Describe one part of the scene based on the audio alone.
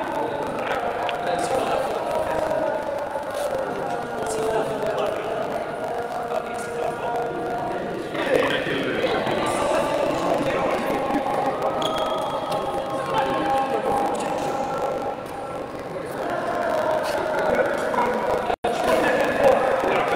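Several men talk casually nearby in a large echoing hall.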